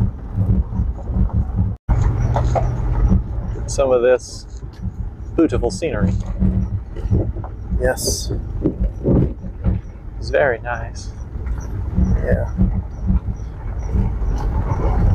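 Tyres crunch and rumble over a gravel road.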